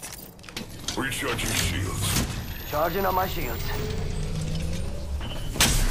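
An electric shield battery hums and crackles as it charges.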